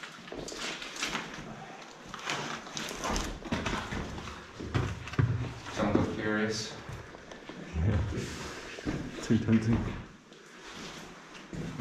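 Footsteps crunch on loose grit and rubble.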